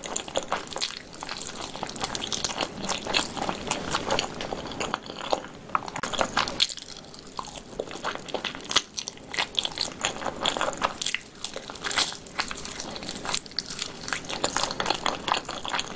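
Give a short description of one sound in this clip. A young woman chews and slurps food close to a microphone, with wet crunchy clicks.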